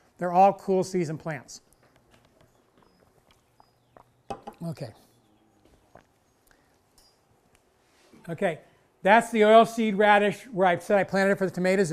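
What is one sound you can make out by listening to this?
An older man speaks calmly, pausing between phrases.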